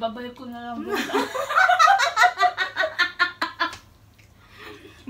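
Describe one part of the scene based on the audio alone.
A second woman laughs loudly close by.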